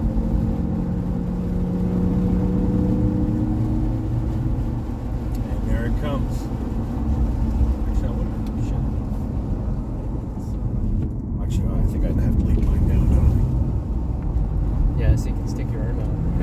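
Tyres hiss on wet asphalt.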